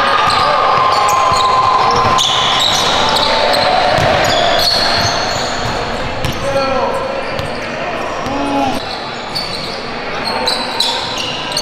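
A basketball bounces with hollow thuds on a hard floor.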